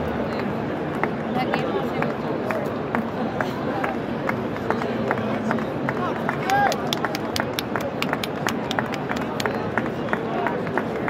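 Spectators clap in quick rapid claps.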